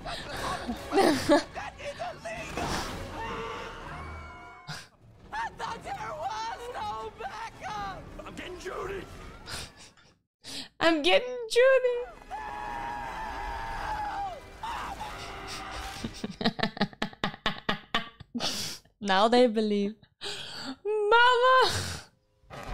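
A young woman laughs into a close microphone.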